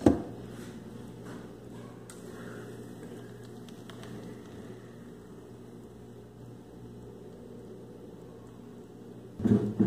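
Thick liquid pours and splashes into a metal tray.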